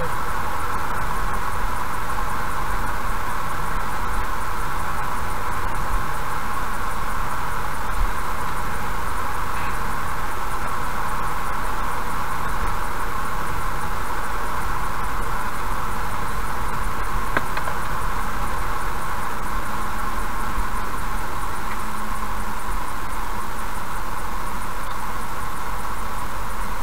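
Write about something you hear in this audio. A car's engine hums steadily while driving.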